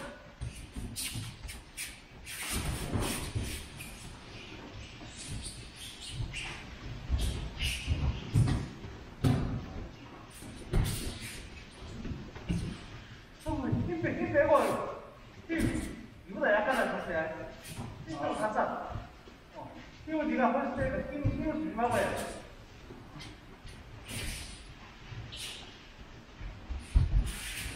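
Bodies thud onto mats in a large echoing hall.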